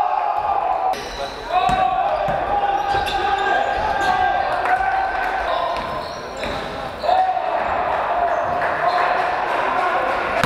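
A basketball thuds as players dribble it.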